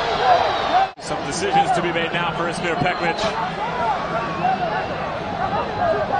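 Several young men argue loudly with a referee.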